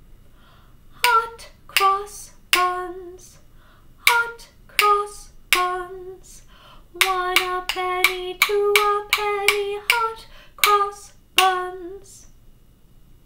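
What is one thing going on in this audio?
Tubes are struck, ringing out short hollow pitched notes in a tune.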